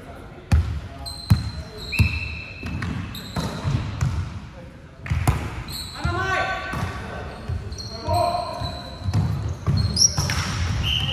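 A volleyball is struck with sharp smacks that echo in a large hall.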